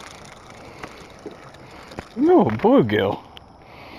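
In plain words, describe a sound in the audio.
A small lure splashes into the water.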